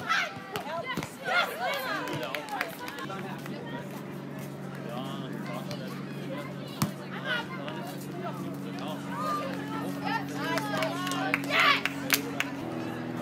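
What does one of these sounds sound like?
A volleyball is struck with a dull slap.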